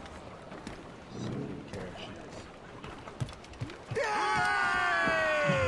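Footsteps thud on a wooden deck.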